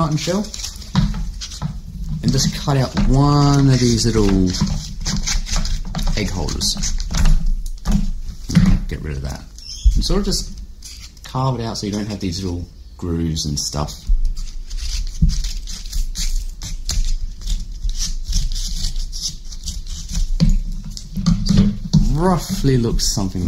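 A young man talks calmly close to a microphone.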